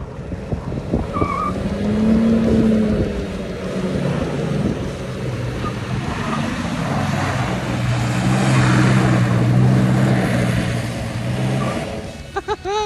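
A pickup truck's engine revs hard and roars.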